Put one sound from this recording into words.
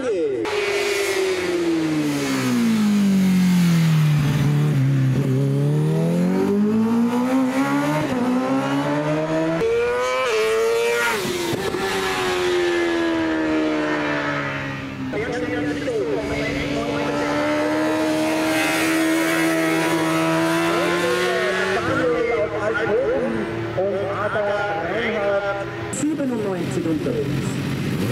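A motorcycle engine roars loudly, revving up and down as it passes.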